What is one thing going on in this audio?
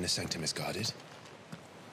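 A young man talks briefly and with animation close to a microphone.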